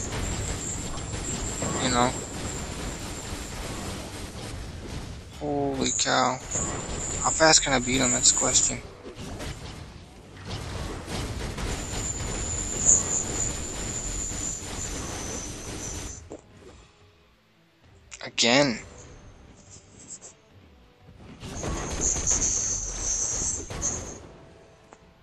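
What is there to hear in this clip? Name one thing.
Blasts, explosions and energy beams crackle and boom in a fast fight.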